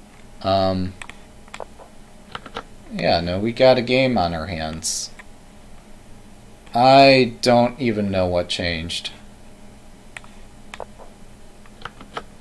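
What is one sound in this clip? A chess piece clicks down onto the board.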